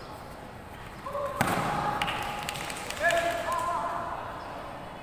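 Young male fighters let out sharp, drawn-out shouts in a large echoing hall.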